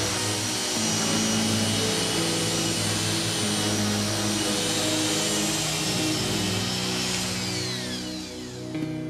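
An electric sander whirs loudly and steadily.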